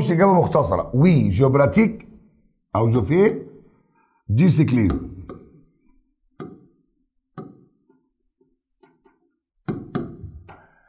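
An older man speaks calmly and clearly into a close microphone, in short bursts with pauses.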